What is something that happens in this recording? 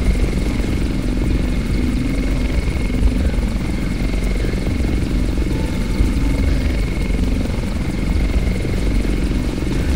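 A helicopter's engine whines and its rotor thumps steadily nearby.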